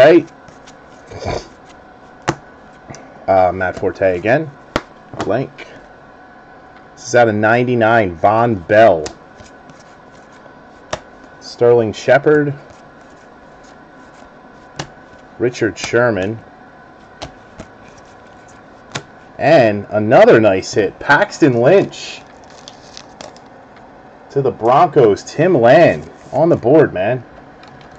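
Trading cards slide and tap against each other in the hands.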